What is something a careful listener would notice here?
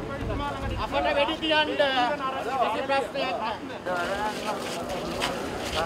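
A crowd of men shout and chant outdoors.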